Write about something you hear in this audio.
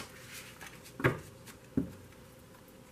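Cards tap and knock against a table.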